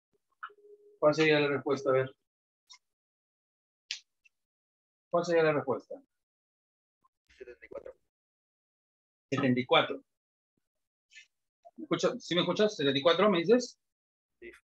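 A middle-aged man speaks calmly in short bursts, close by.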